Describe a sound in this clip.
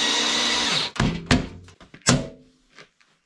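A metal tool knocks sharply against a metal plate a few times.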